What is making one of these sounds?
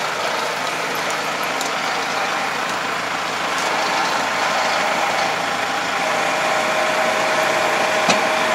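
A tractor engine runs steadily close by.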